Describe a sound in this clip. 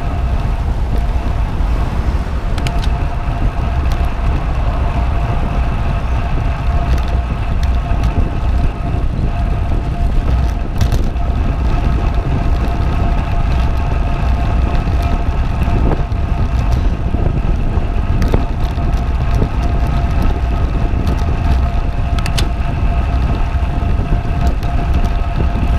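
Wind roars and buffets steadily over a moving bicycle.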